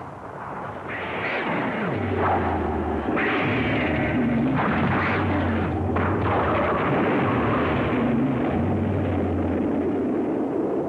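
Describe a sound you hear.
Giant monsters roar loudly.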